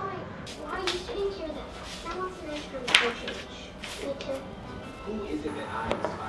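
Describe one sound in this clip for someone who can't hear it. A paper map rustles as it is unfolded.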